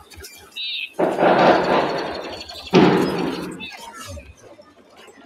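A loud explosion booms close by.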